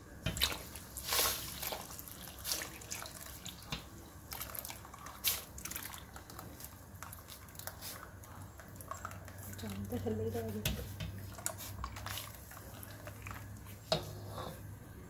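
A spatula scrapes and swishes through liquid in a metal pot.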